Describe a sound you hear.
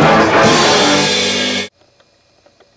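A drum kit plays loudly and then cuts off abruptly.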